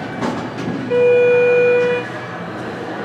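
An elevator chime rings with a clear, sustained tone.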